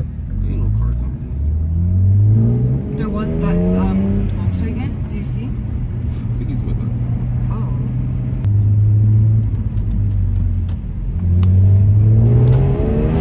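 A car engine revs up and down while driving at speed.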